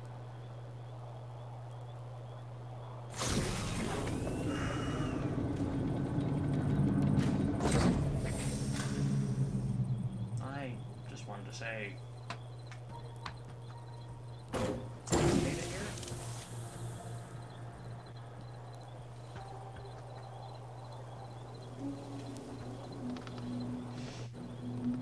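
A craft's engine hums steadily and swells to a roar as it passes close.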